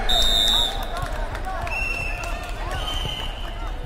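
A volleyball is struck with a dull slap.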